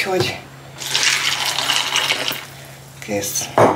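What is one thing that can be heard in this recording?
Milk pours into a bowl of cereal.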